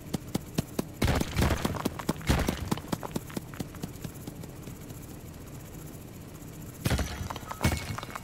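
Loud booming blasts go off.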